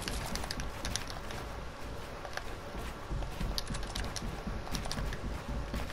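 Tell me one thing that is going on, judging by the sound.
Game building pieces snap into place with quick, sharp clicks.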